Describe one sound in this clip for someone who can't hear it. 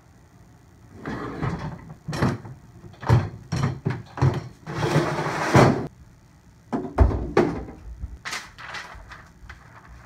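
A metal folding table clanks and bangs as it is moved.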